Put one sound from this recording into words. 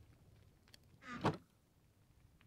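A wooden chest thuds shut.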